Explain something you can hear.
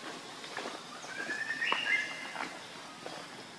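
A baby monkey squeals in short high cries close by.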